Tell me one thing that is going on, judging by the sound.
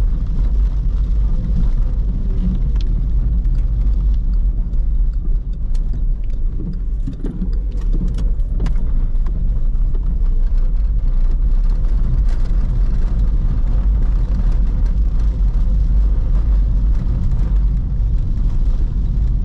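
Tyres rumble over wet cobblestones.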